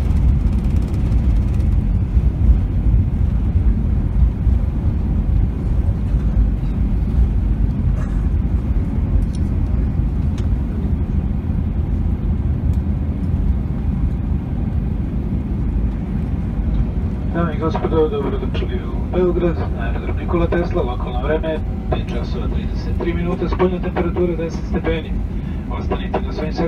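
The plane's wheels rumble over the runway.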